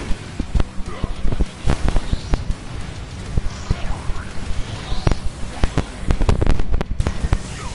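Explosions boom and crackle in a video game.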